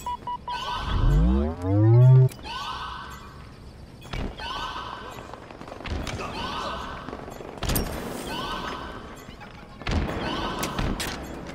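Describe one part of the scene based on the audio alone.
Gunfire cracks in quick bursts.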